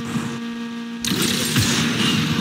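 A car crashes and tumbles with scraping impacts.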